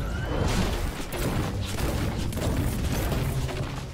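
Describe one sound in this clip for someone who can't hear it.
A pickaxe chops into a tree with repeated thuds.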